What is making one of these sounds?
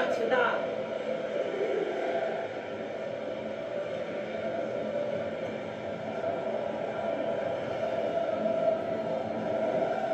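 A stadium crowd cheers and roars steadily through a television's speakers.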